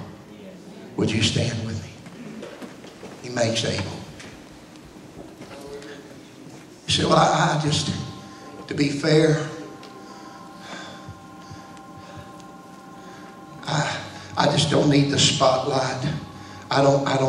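A man preaches with passion into a microphone, heard over loudspeakers in a large echoing room.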